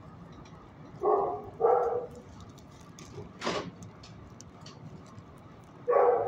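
A dog barks loudly close by.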